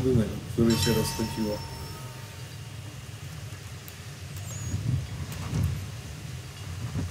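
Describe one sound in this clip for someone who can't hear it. Sea waves wash and rumble low against a ship's hull.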